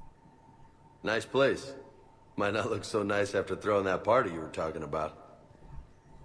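A young man speaks in a relaxed voice.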